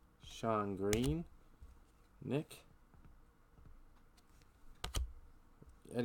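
Trading cards click and slap as they are handled.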